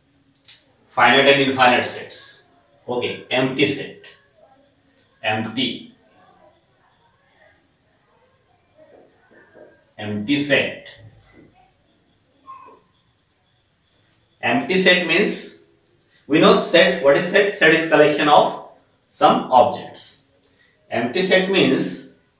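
A man speaks calmly and clearly, as if teaching, close by.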